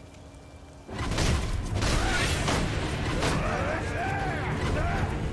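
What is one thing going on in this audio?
A blade slashes through flesh.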